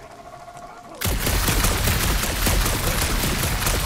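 Blaster shots fire in a rapid, crackling burst.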